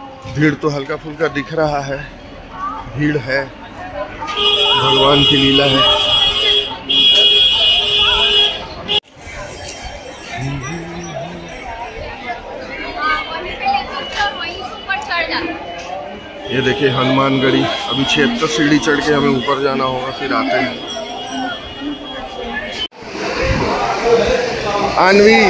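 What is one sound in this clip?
A crowd of people chatters and walks about outdoors.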